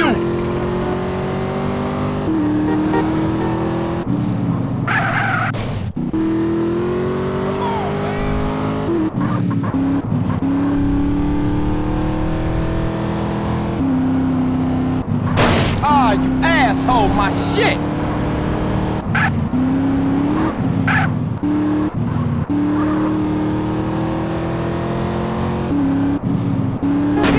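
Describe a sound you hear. A car engine roars steadily, rising and falling in pitch as it shifts gears.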